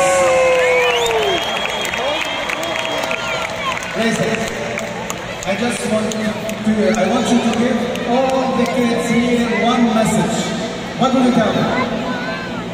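A large crowd chatters and cheers in a big echoing arena.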